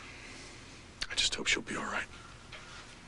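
A woman speaks briefly and emotionally, close by.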